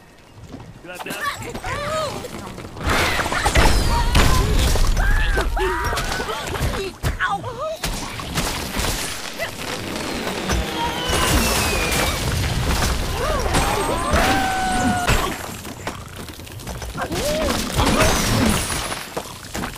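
Cartoon birds squawk as they are launched.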